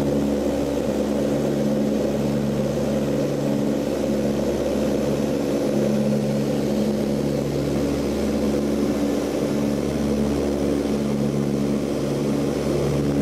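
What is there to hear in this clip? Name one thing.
Air rushes past outside a cabin.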